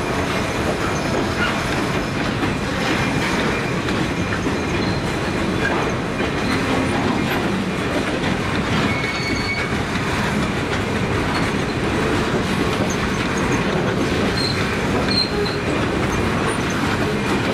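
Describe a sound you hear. Steel wheels squeal and clack on the rails.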